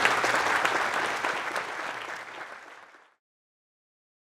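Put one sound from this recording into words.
A crowd applauds and the clapping slowly fades away.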